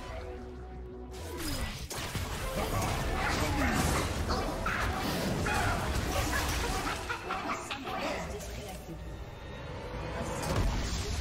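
Magic spells whoosh, crackle and burst in a busy fight.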